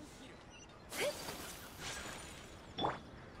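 A bright magical shimmer sounds.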